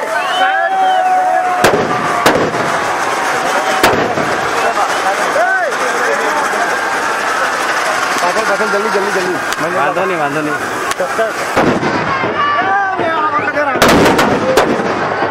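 Fireworks crackle and fizz loudly.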